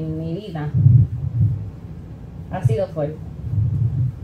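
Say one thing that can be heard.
A young woman speaks into a microphone in a small echoing room.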